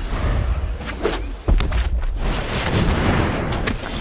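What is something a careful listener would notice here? A magical whoosh and rumble play as a card lands.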